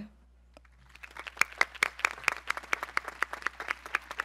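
A crowd applauds outdoors.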